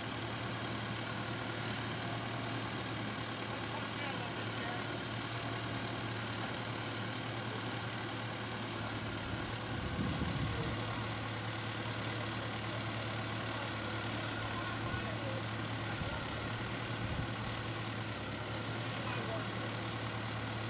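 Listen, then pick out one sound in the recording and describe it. A diesel engine idles with a steady low hum.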